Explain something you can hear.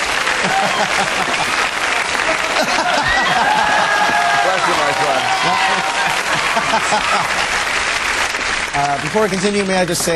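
A studio audience laughs loudly and cheers.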